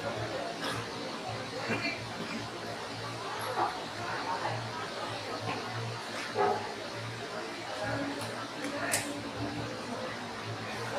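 Many people murmur and chat quietly in the background.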